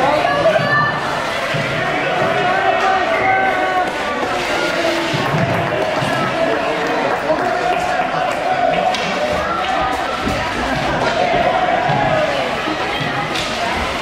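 Hockey sticks clack against the ice and a puck.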